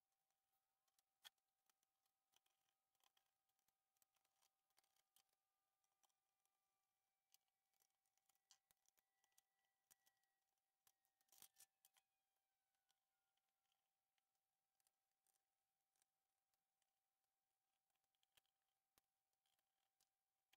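Small plastic and metal parts click and tap faintly as they are handled.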